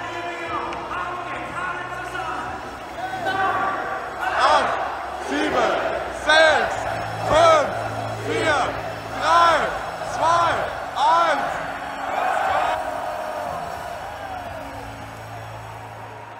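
A large stadium crowd roars and sings in the open air.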